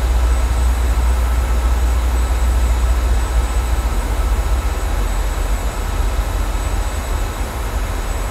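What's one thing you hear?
A jet engine roars steadily, heard from inside an aircraft cabin.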